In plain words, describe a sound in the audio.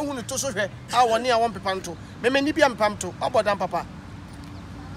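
A man speaks in a deep voice a little farther off.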